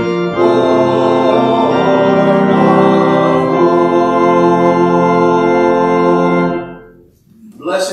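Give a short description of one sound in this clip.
A congregation sings a long, held chord together.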